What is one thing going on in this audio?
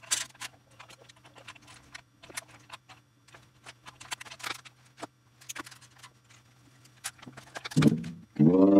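Knocks and taps of someone handling a bass guitar.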